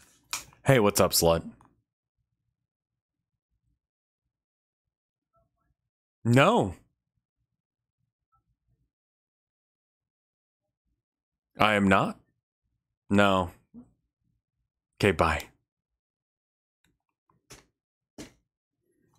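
A young man speaks in short, animated bursts close to a microphone, with long silences between.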